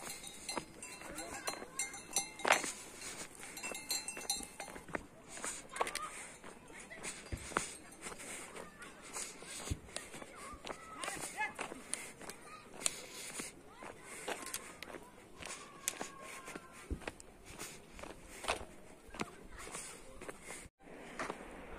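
Footsteps tread steadily on a concrete path outdoors.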